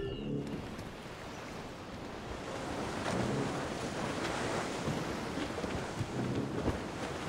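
Waves wash and splash against a wooden ship's hull.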